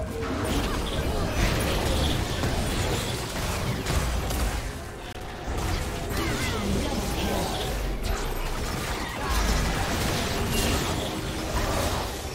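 Magic spells crackle and blast in a busy video game battle.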